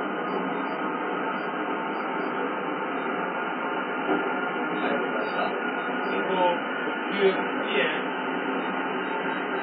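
A train rumbles steadily along the tracks, heard through a television's speakers.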